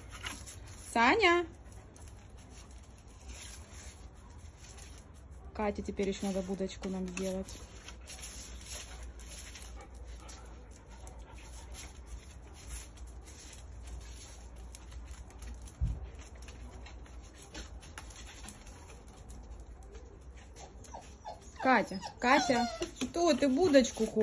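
Dogs whine and yelp excitedly nearby.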